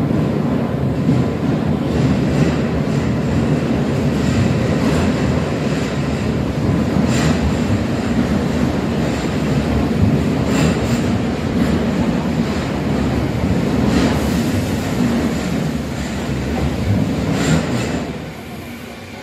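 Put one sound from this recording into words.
A subway train approaches through a tunnel with a loud, steady rumble.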